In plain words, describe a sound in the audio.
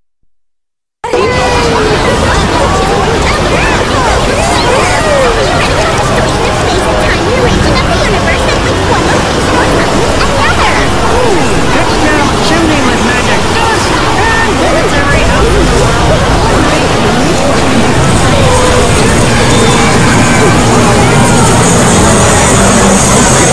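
Many cartoon soundtracks play over each other in a loud, chaotic jumble.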